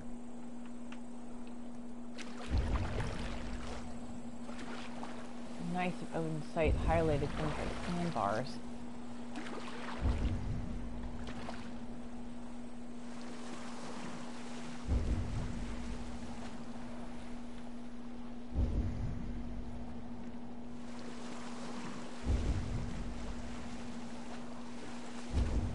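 Waves wash against a small boat at sea.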